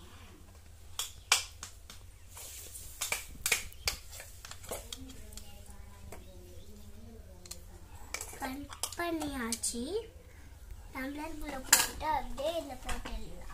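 Plastic toys clack and knock together.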